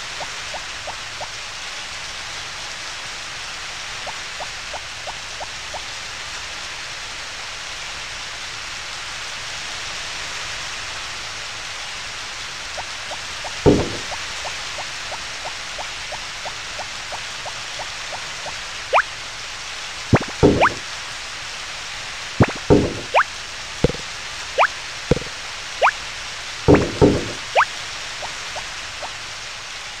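Light footsteps tap quickly along the ground.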